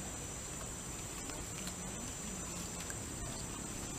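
Dry leaves rustle as a young orangutan moves its hands over the ground.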